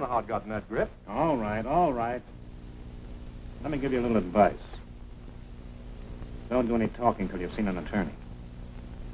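A man speaks quietly and tensely.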